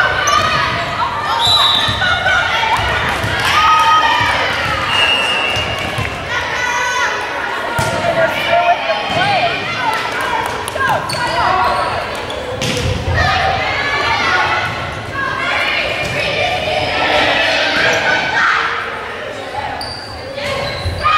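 Girls shout and cheer in a large echoing gym.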